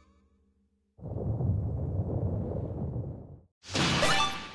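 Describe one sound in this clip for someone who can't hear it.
A low rumbling effect swells and stops.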